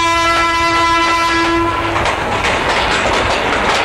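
A train rumbles past.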